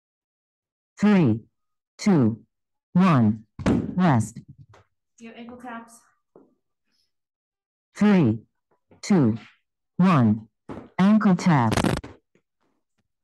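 A woman calls out short, loud counts over an online call.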